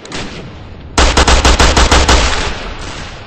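A machine gun fires a rapid burst of loud shots.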